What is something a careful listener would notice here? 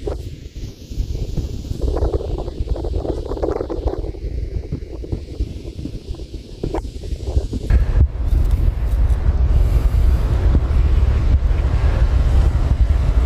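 Wind blusters across open water, rumbling against the microphone.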